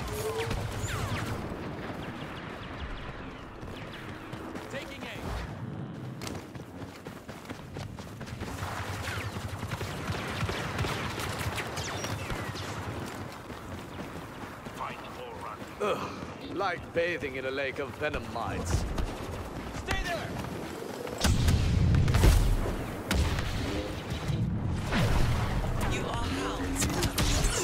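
Footsteps run over gravel and dirt.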